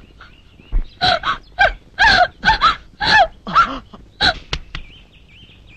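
A young woman cries out in distress, close by.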